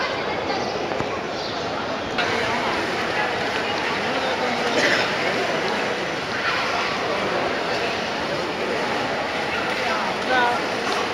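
A crowd chatters in a busy echoing hall.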